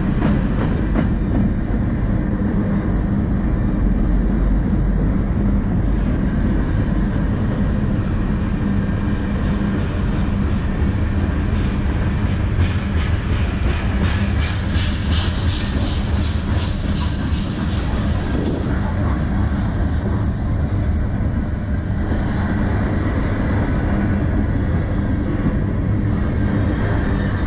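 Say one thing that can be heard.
Steel wheels clatter rhythmically over rail joints.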